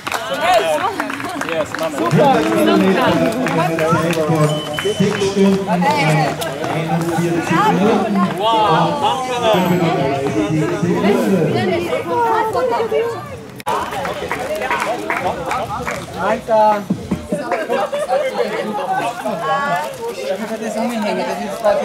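Men and women talk and laugh loudly together.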